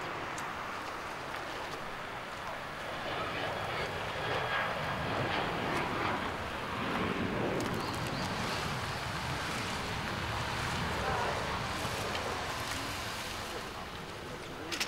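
A group of men and women chat nearby outdoors.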